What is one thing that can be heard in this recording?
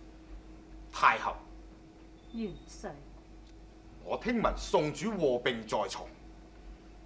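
A man speaks loudly and forcefully.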